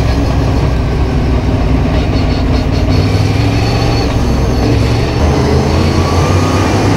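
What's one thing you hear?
A race car engine roars loudly close by.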